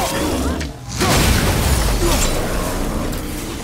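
A shattering burst of ice crunches loudly.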